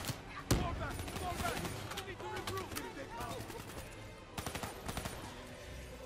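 A rifle fires in loud, rapid shots.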